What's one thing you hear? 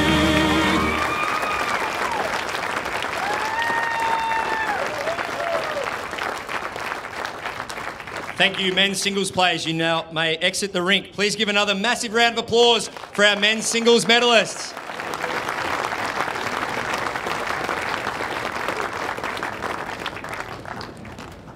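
A crowd applauds outdoors.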